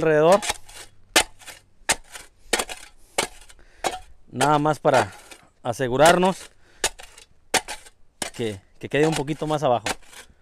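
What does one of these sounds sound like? A shovel scrapes and taps against gravelly ground.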